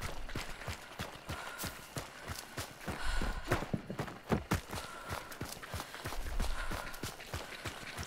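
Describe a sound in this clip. Footsteps crunch quickly over dirt and dry leaves.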